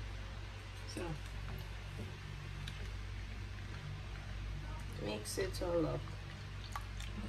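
A ladle stirs and splashes liquid in a bowl.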